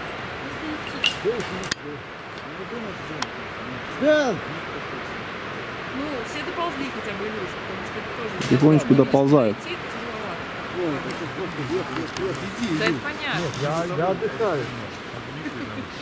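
A man talks calmly nearby outdoors.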